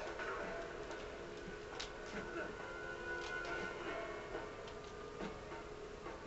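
Upbeat video game music plays through a television speaker.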